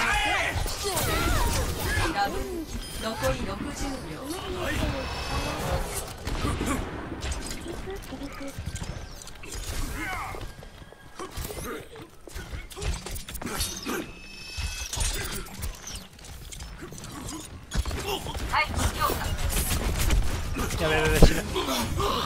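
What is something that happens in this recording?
Blades slash and clang in quick strikes.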